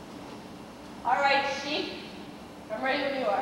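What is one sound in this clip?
A young woman speaks loudly and theatrically on a stage.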